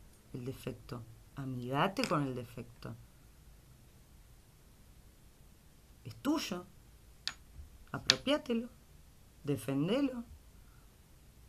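A young woman speaks calmly and close to the microphone, in short phrases with pauses.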